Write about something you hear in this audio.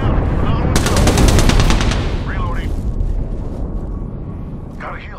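A low industrial rumble hums steadily and slowly fades.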